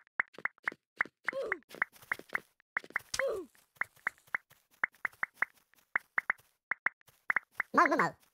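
A touchscreen keyboard clicks with each quick tap.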